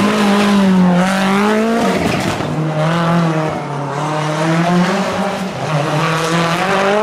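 A rally car engine roars loudly, its pitch rising and dropping as it revs.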